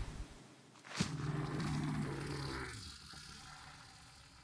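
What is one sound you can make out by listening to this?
A large beast growls low and deep.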